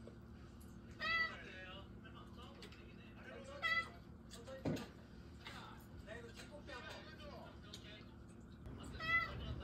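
A cat meows close by, a few times.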